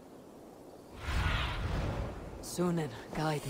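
A large bird's wings flap in a loud whoosh.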